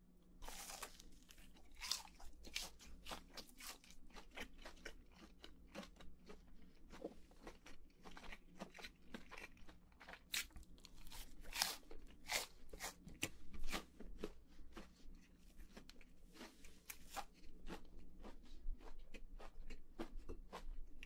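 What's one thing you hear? A young man chews crunchy fried food loudly and close up.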